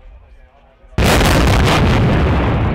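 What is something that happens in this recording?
A loud blast booms out suddenly.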